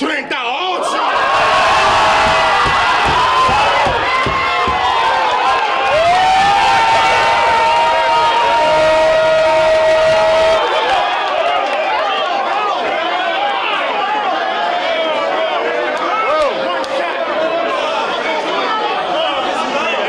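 A crowd of young men shouts and cheers loudly.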